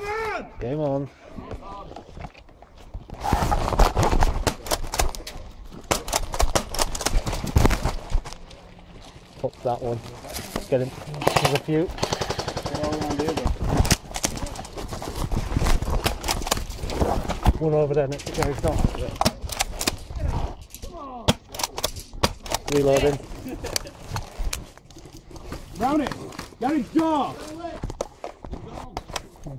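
An airsoft gun fires sharp clicking shots nearby.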